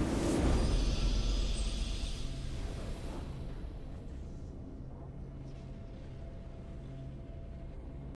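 A game's victory fanfare swells and slowly fades.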